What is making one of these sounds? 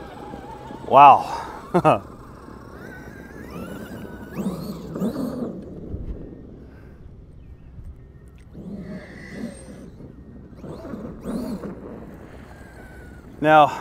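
A small electric motor whines as a toy truck speeds across rough ground.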